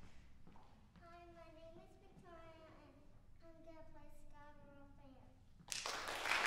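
A young girl speaks clearly to an audience in an echoing hall.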